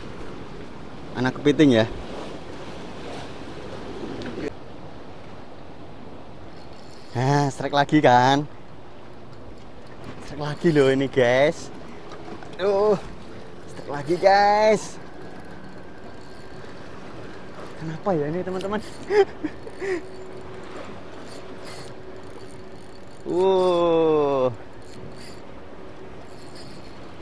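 Waves splash gently against rocks below.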